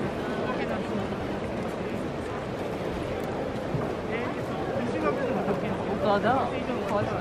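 Voices in a crowd shout and chant nearby.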